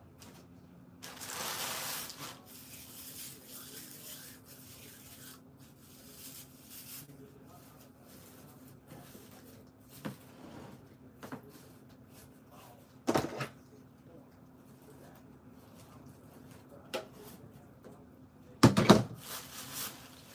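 Plastic Easter grass crinkles as a hand grabs it.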